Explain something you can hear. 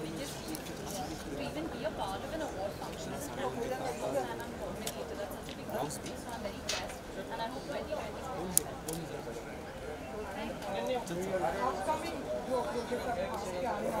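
A woman talks warmly with people close by.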